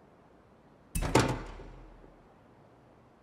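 Car doors and a hood pop open with a heavy clunk.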